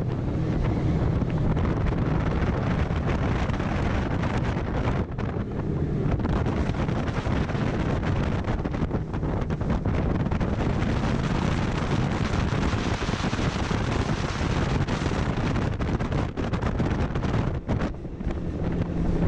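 Wind buffets loudly past the microphone.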